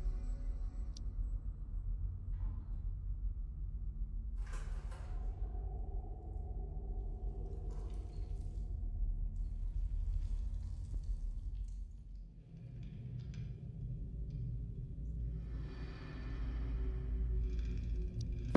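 Eerie, low ambient music drones steadily.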